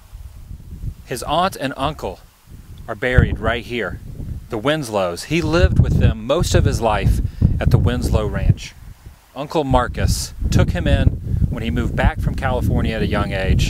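A young man talks into a microphone with animation, close by.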